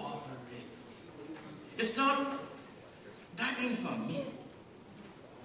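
An elderly man speaks emphatically into a microphone in a large echoing hall.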